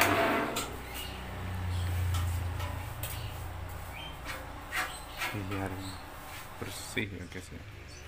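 A hand brushes and taps on a metal tray.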